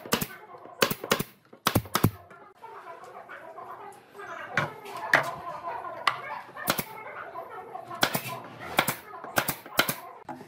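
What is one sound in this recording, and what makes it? A pneumatic nail gun fires nails into wood.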